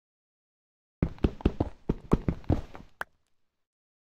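A pickaxe chips rapidly at stone blocks.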